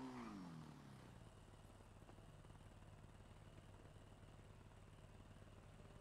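A motorbike engine winds down from a rev and settles into a low, steady idle.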